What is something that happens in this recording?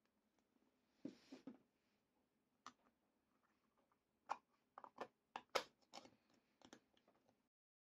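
Small plastic pieces tap and click softly as they are pressed into place.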